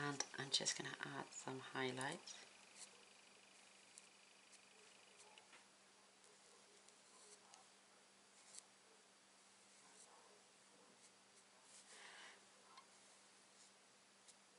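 A felt-tip marker scratches softly on card.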